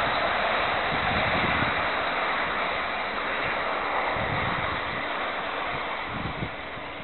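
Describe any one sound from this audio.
A distant train rumbles along the tracks and fades away.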